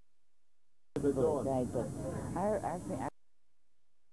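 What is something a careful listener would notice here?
An elderly woman speaks through a television broadcast.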